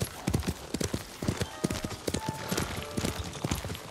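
Grass and bamboo leaves rustle as a horse brushes through.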